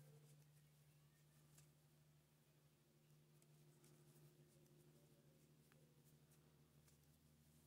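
A crochet hook softly clicks and rustles through thread.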